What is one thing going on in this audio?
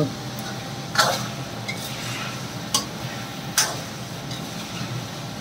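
A metal spoon scrapes and clinks against a wok.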